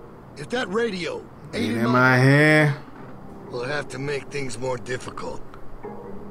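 A man speaks in a low, threatening voice.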